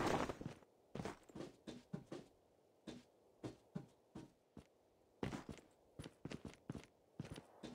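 Footsteps tap quickly on a hard surface.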